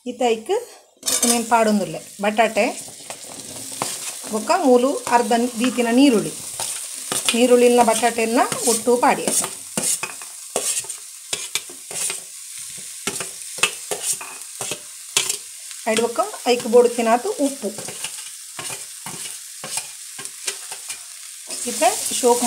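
Oil sizzles in a hot pan.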